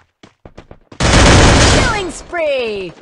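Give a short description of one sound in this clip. A rifle fires a loud rapid burst.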